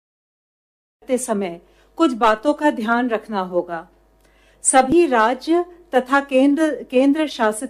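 A woman speaks steadily into a microphone, reading out.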